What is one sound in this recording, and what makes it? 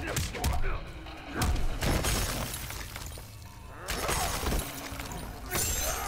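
Ice cracks and shatters.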